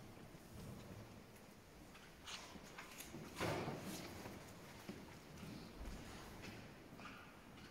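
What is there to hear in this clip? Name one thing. Footsteps shuffle on a stone floor in a large echoing hall.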